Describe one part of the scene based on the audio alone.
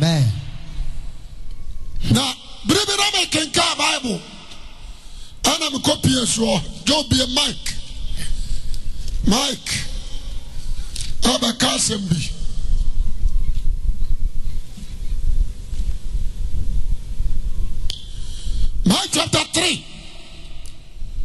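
A young man speaks loudly and with animation into a microphone in an echoing hall.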